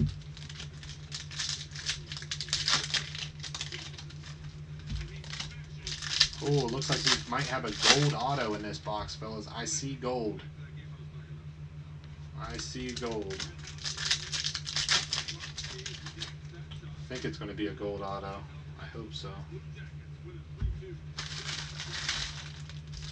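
Plastic card wrappers crinkle and rustle in gloved hands.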